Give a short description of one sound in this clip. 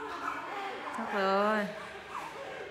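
A newborn baby cries out briefly nearby.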